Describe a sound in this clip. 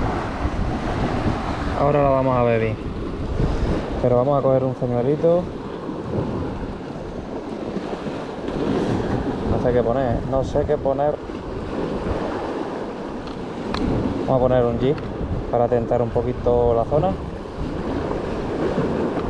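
Waves wash against rocks below.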